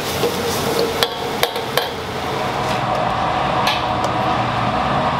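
A metal ladle scrapes and clanks against a large pot.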